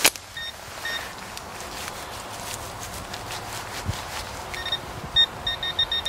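A hand rustles through loose soil.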